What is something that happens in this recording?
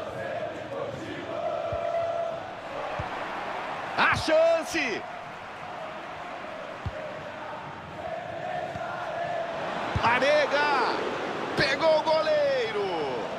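A stadium crowd roars and chants steadily.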